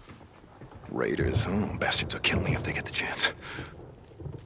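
A man speaks in a low, gruff voice.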